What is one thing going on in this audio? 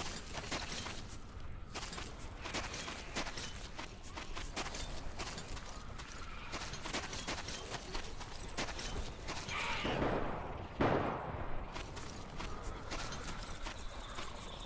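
Footsteps crunch on dry dirt at a steady walking pace.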